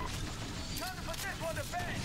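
Laser guns fire in rapid bursts.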